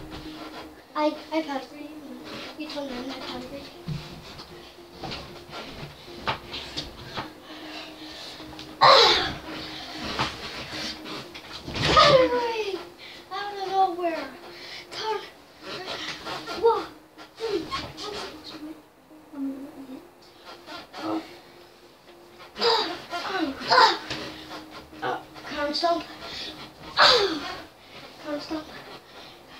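Children shout and squeal playfully close by.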